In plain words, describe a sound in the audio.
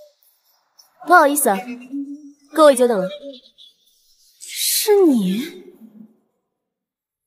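A young woman speaks with surprise, close by.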